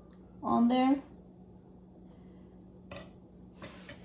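A metal spoon scrapes and clinks against a glass plate.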